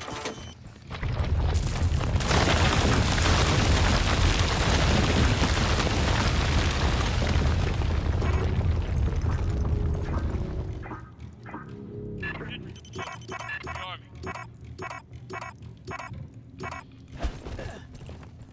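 Automatic guns fire in rapid bursts.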